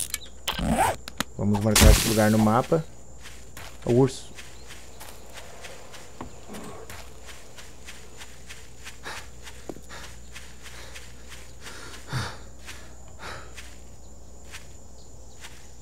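Footsteps rustle steadily through dry grass.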